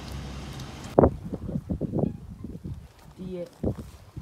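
Chickens cluck outdoors.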